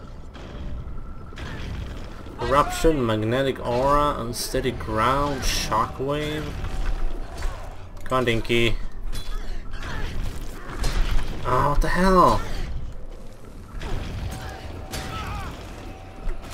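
Spell and weapon effects whoosh and crackle in a video game fight.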